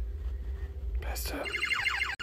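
Electronic game music starts playing from a small speaker.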